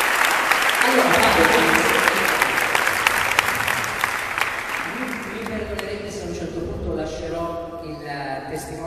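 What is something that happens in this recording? Men and women in the crowd chatter and call out.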